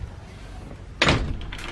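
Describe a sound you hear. Metal shopping trolleys rattle and clank.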